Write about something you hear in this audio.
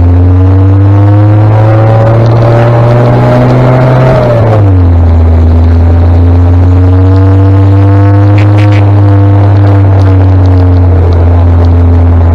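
A tractor engine rumbles just ahead.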